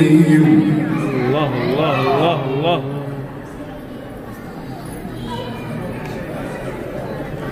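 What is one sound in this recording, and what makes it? A man chants melodically into a microphone, heard through loudspeakers in a large echoing hall.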